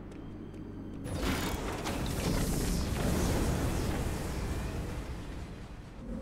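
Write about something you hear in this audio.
Heavy machinery roars and rumbles loudly.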